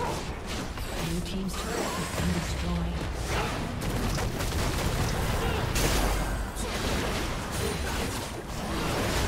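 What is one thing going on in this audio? Game combat sounds of spells blasting and weapons clashing ring out rapidly.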